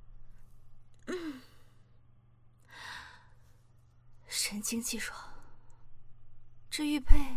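A young woman speaks softly and briefly, close by.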